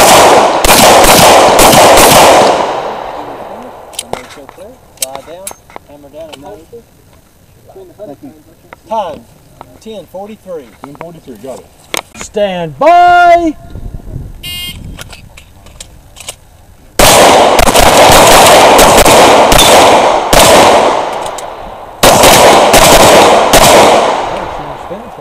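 Rapid pistol shots crack loudly outdoors.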